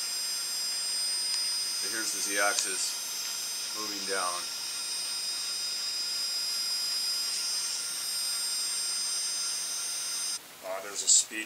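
An electric router motor hums with a steady high whine.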